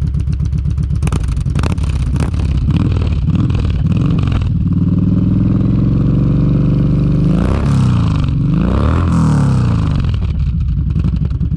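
A motorcycle engine revs up loudly again and again, then drops back.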